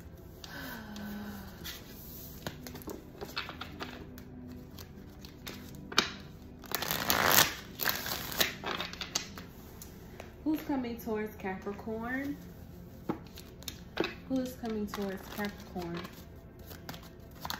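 Playing cards tap and slide against a table.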